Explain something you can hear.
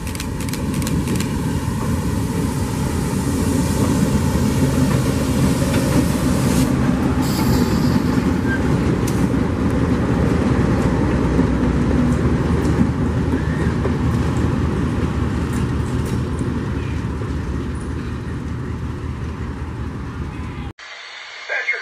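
A diesel locomotive rumbles loudly past, close by, and slowly fades.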